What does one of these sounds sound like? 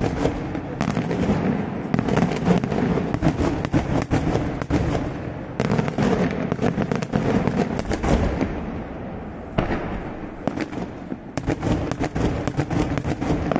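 Daytime fireworks go off in rapid bangs, echoing off the hills.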